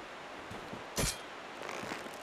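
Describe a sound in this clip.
An arrow twangs from a bow.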